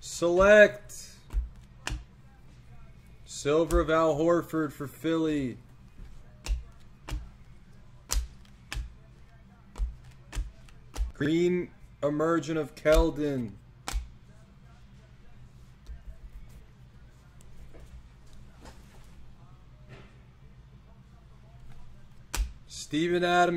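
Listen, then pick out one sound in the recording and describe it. Trading cards flick and snap as they are shuffled by hand.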